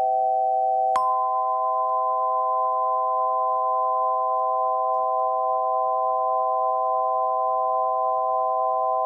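Metal chime tubes ring out with low, steady, long-held tones.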